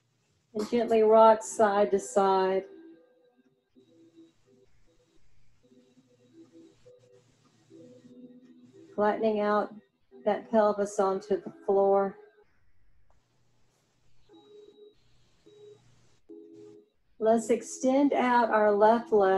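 A woman gives calm instructions through an online call.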